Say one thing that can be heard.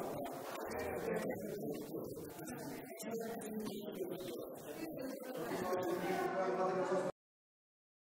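A crowd of men, women and children chatter in a room.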